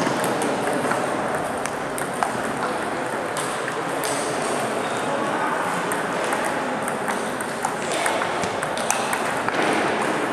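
A ping-pong ball clicks sharply back and forth off paddles and the table.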